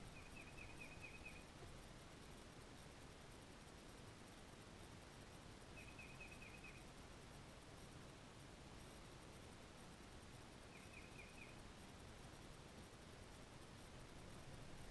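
A fishing reel whirs softly as line is wound in.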